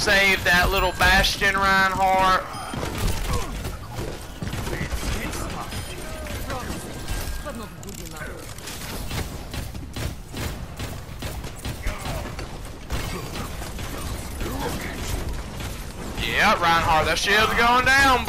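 A heavy gun fires bursts of shots.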